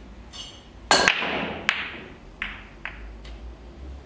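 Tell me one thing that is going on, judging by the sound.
Pool balls clack against each other and roll across the table.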